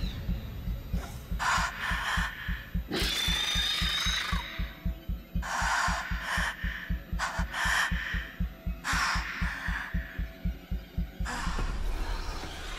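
A creature breathes in rasping hisses close by.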